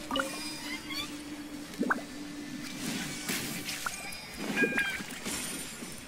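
Soft chiming tones ring out now and then.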